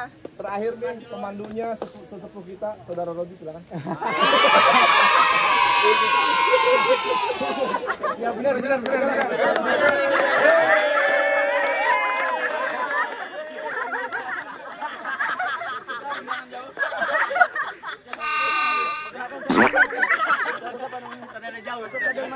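Young men shout and cheer with excitement.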